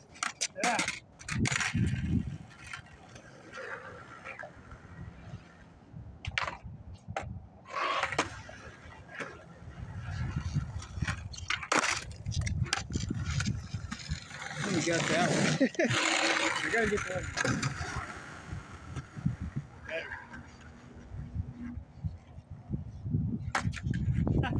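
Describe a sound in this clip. A skateboard deck clacks against the ground.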